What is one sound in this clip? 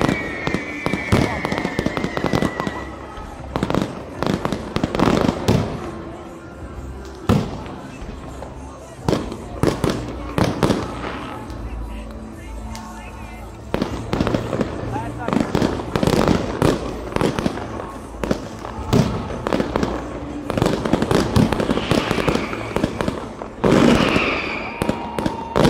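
Fireworks whistle as they shoot up.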